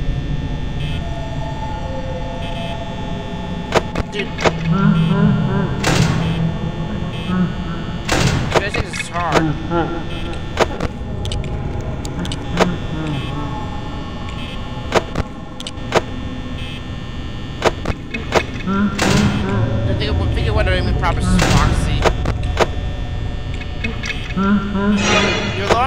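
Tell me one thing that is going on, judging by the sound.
A metal security door slams shut.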